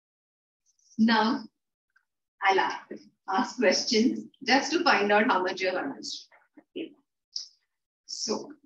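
A woman speaks calmly and clearly into a nearby microphone.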